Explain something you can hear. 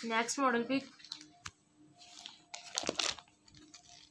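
A plastic packet crinkles as it is handled.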